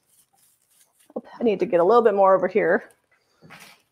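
A paintbrush scrapes over a wicker basket.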